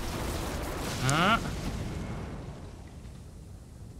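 A burst of blood sprays with a loud hiss.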